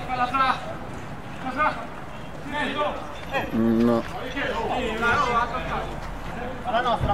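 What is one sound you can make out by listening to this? Young men shout to each other outdoors, some distance away.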